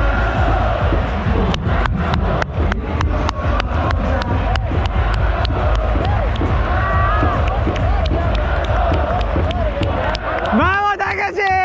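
A large stadium crowd roars and chants outdoors.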